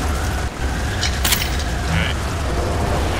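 A short game chime sounds as items are picked up.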